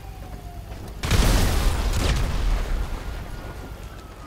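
A boat explodes with a loud boom that rumbles away.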